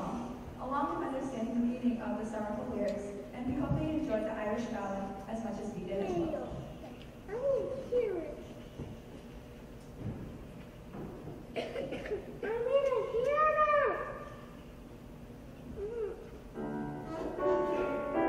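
A choir of young men and women sings together in a hall, with pauses between phrases.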